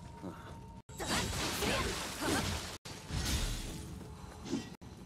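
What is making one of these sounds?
Swords slash and clash in a fight.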